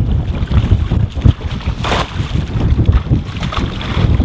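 A large fish thrashes and splashes loudly in the water.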